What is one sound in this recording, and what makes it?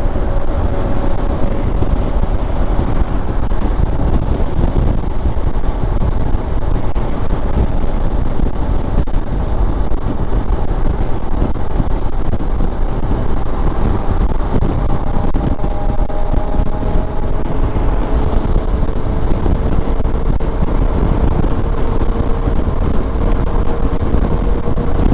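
A motorcycle engine hums steadily, its pitch slowly rising.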